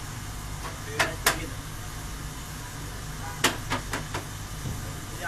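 A machine clicks and clacks sharply a few times.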